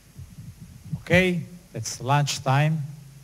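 A middle-aged man speaks into a microphone to a room, his voice carried over loudspeakers.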